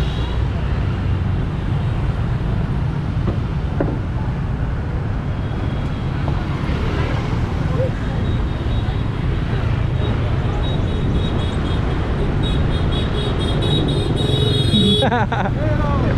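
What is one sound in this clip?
Motor scooter traffic hums past on a busy street.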